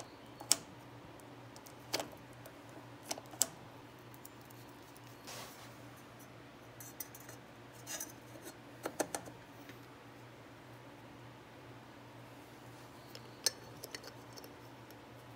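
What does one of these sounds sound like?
Small metal parts click and tap against a wheel hub.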